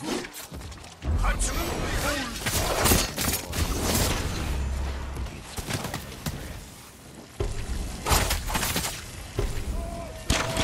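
Heavy booming impacts thud and rumble.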